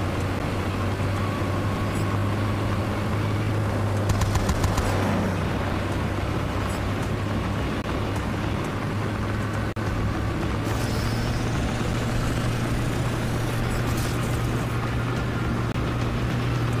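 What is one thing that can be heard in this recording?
A heavy vehicle engine roars steadily while driving.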